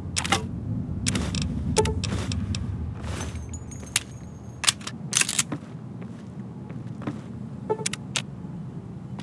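Menu clicks sound sharply.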